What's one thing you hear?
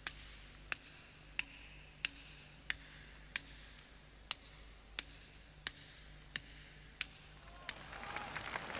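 A hammer strikes a metal chisel on stone in steady, regular blows.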